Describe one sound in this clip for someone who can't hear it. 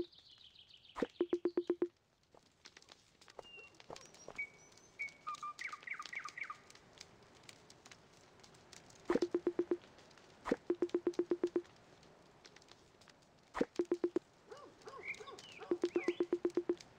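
Rapid bursts of quick, bubbly blips sound in short runs.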